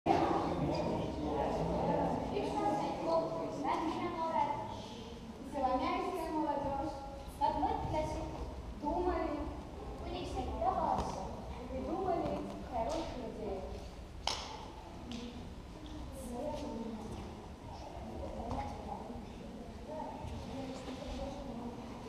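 A young woman speaks expressively in a large echoing hall.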